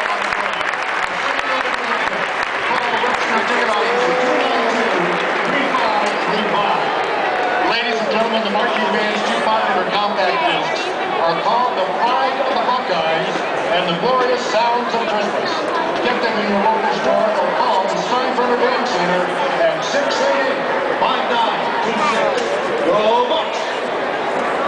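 Young men nearby shout and cheer loudly.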